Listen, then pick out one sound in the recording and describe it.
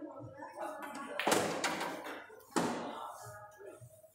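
Billiard balls click against each other and roll.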